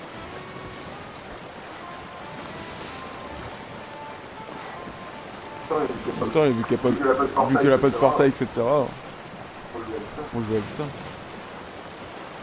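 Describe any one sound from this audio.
Waves wash and splash against a sailing ship.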